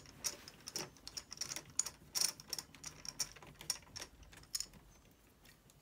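Plastic parts click and rattle as hands pry a laptop cover loose.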